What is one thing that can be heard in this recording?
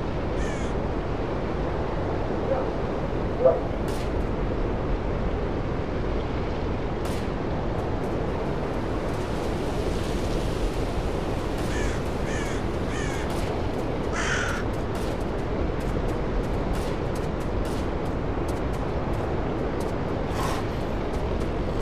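Wind blows steadily through the trees outdoors.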